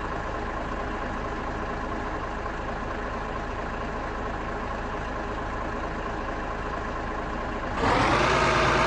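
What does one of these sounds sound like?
A truck engine idles with a low steady rumble.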